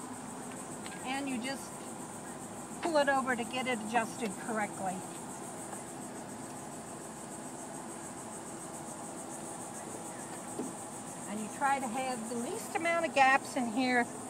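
An elderly woman speaks with animation close by.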